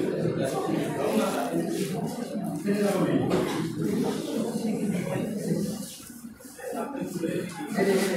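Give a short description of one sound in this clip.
A woman speaks to a group in a room with a slight echo.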